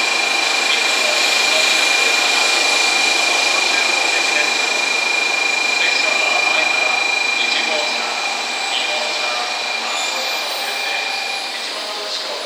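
A train whines with a steady high hum.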